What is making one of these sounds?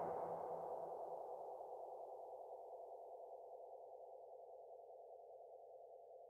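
A racing car engine roars at high speed, slowly fading.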